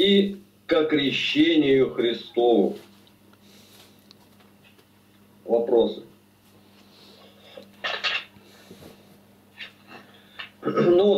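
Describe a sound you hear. A middle-aged man speaks calmly and haltingly through an online call.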